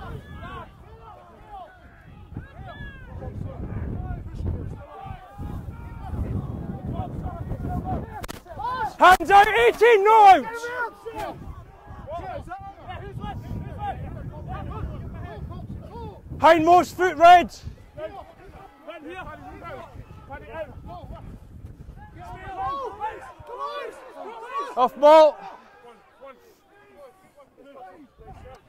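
Rugby players shout to each other outdoors.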